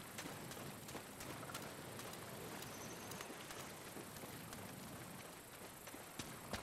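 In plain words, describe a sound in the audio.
A man wades and splashes through shallow water.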